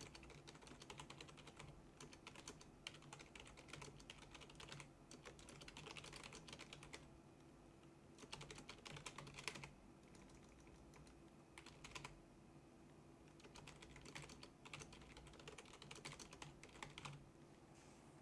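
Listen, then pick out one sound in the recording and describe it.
Keys on a keyboard clatter in quick bursts of typing.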